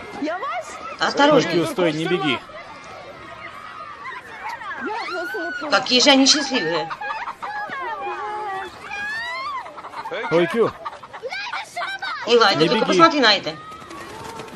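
Children shout and squeal excitedly outdoors.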